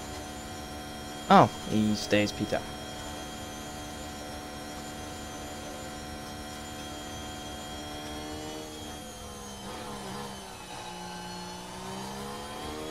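A racing car engine whines steadily at high revs, dipping in pitch and rising again.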